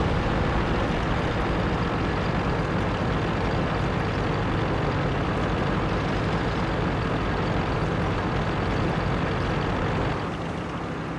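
A tank engine rumbles loudly as the tank drives along.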